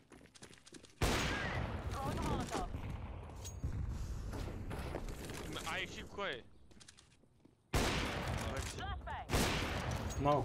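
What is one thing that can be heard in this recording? A sniper rifle fires with a loud, sharp crack.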